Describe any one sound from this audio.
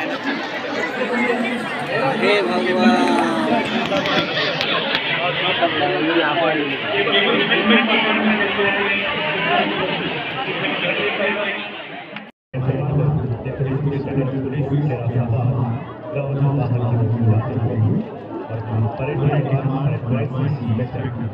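A large crowd of men and women chatters nearby outdoors.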